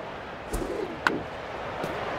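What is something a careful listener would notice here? A bat hits a baseball with a sharp crack.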